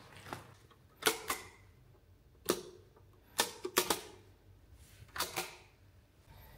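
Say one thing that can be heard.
Light switches click several times.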